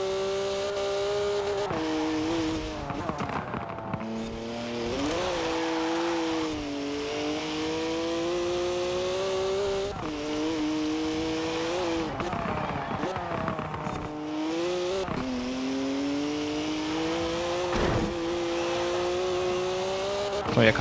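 A car engine roars at high revs, dropping with each gear shift and braking, then climbing again.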